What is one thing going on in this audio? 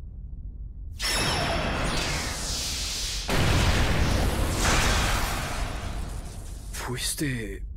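A huge explosion roars and rumbles.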